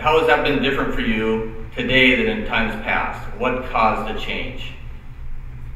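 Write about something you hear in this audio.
A man speaks into a microphone, heard through a loudspeaker.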